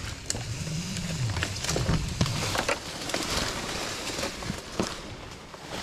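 Climbing gear clicks and rattles against a rope.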